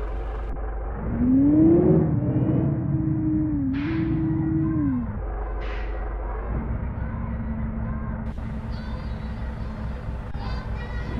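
A car engine revs up and settles into a steady hum.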